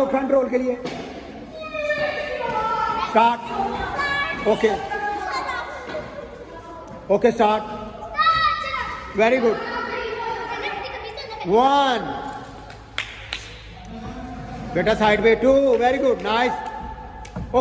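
Young girls talk and call out excitedly nearby.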